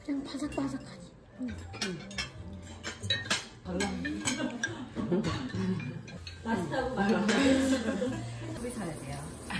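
A woman talks softly up close.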